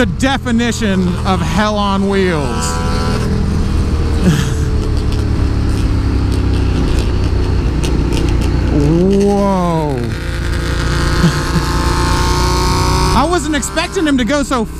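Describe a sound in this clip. A motorcycle engine revs up and down close by.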